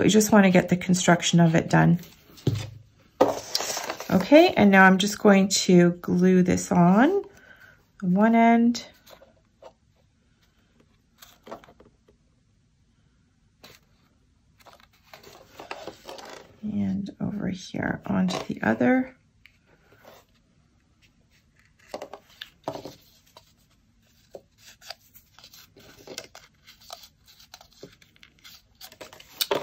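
Paper rustles and crinkles as hands fold it.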